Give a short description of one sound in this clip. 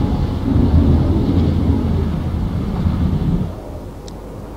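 Explosions rumble deeply from a burning warship.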